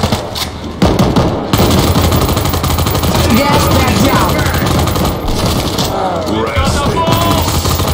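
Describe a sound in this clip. Rapid gunfire rattles loudly and steadily.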